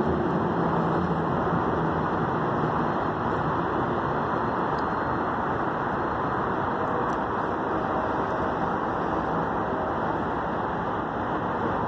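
A train rumbles slowly past on the tracks nearby.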